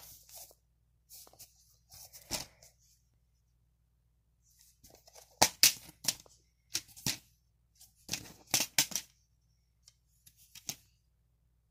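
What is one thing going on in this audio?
A plastic disc case clicks and snaps as it is handled and opened.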